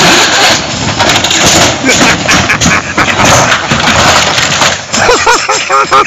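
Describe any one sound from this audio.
A wooden shed creaks and crashes over onto the ground.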